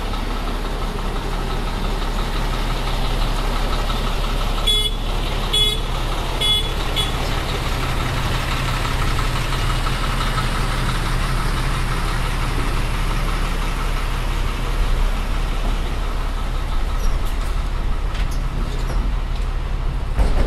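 A large truck's diesel engine idles with a steady, low rumble close by.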